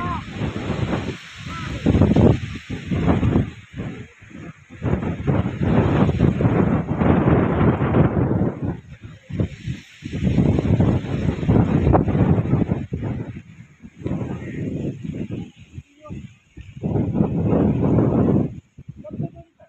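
Strong wind roars in loud gusts outdoors.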